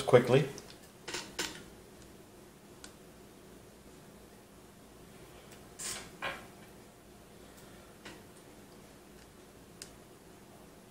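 Plastic parts click and tap as they are handled.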